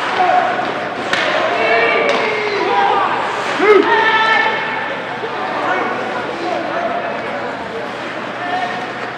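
Ice skates scrape and carve on ice.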